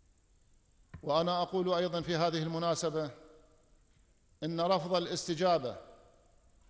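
A middle-aged man speaks firmly into microphones in short bursts.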